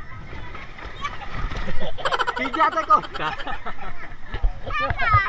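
A young boy laughs loudly close by.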